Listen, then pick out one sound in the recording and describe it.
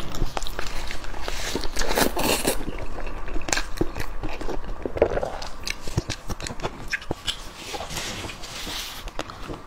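Plastic gloves crinkle as a young woman tears food apart.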